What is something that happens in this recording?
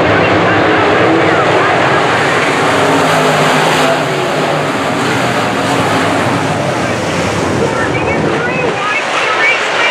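A crowd cheers and chatters.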